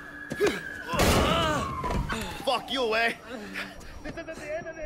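A man shouts angrily and breathlessly, close by.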